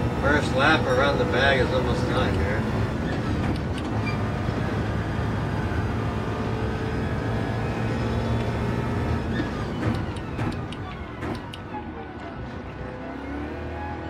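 A racing car engine roars and shifts gears steadily.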